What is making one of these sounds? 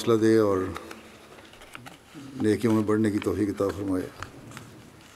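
An elderly man speaks calmly into a microphone, reading out.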